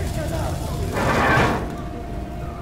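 A heavy metal furnace door slams shut.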